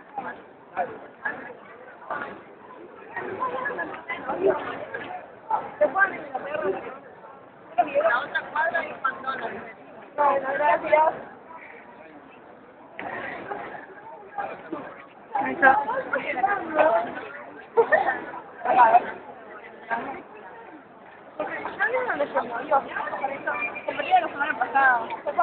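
Young women talk and laugh close by, with animation.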